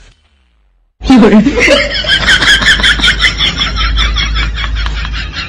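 A man laughs heartily close by.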